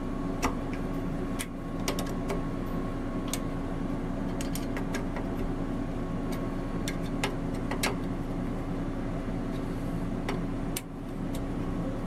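A ratchet wrench clicks sharply as it turns a bolt.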